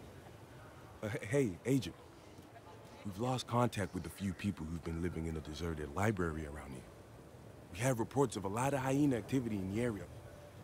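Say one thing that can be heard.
A second man speaks in a friendly, conversational way.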